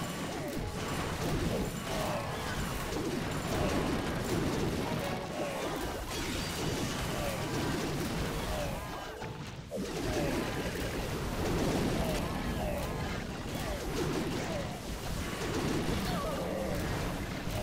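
Game battle effects crash, zap and crackle without pause.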